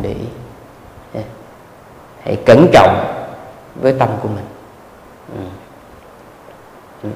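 A young man speaks calmly into a microphone, with pauses between phrases.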